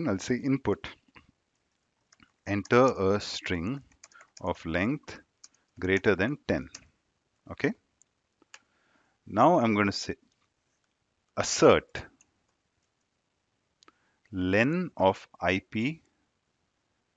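A young man talks calmly and closely into a headset microphone, in short phrases with pauses.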